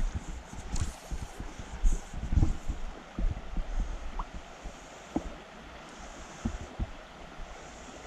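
A shallow stream ripples and gurgles over stones.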